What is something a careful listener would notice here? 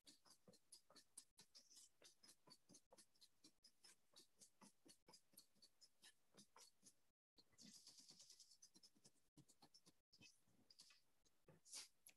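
A whisk beats quickly against a metal bowl, clicking and scraping in a fast rhythm.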